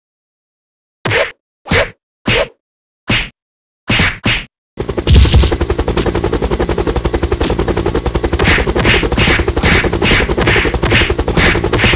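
Punches and kicks land with sharp thuds in a game.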